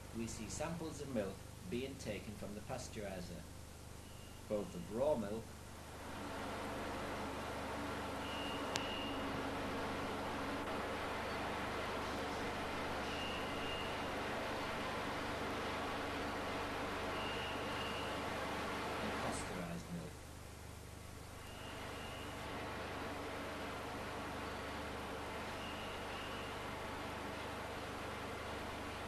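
Machinery hums steadily.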